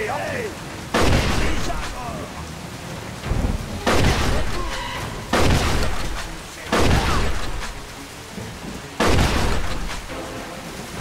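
Shotgun blasts ring out with echoes.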